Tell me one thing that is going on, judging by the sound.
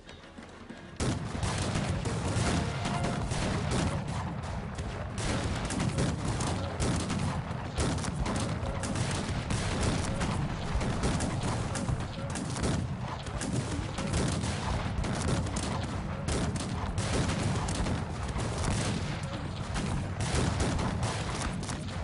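Musket fire crackles rapidly in a battle.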